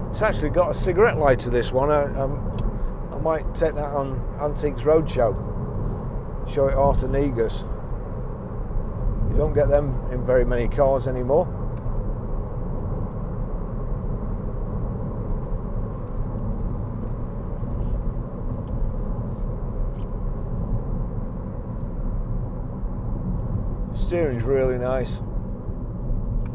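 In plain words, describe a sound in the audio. A car's engine and tyres hum steadily on the road.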